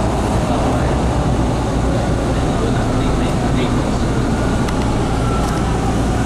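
A subway train rumbles steadily along the track.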